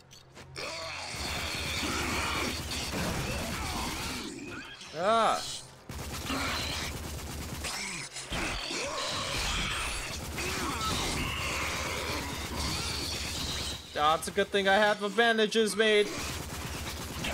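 A machine gun fires rapid bursts in a room with an echo.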